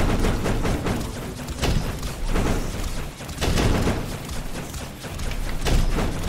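Guns fire in rapid bursts with zapping blasts.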